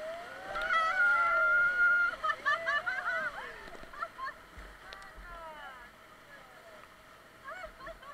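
Rapids rush and churn loudly around a raft.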